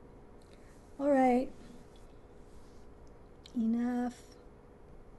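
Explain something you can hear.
A woman speaks calmly in short bursts, close to the microphone.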